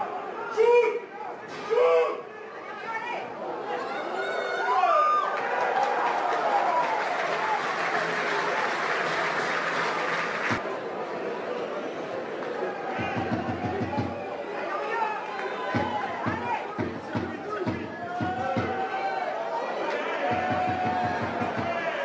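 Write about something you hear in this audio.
Rugby players shout to each other across an open pitch.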